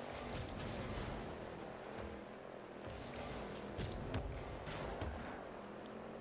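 A video game car's engine roars and whooshes.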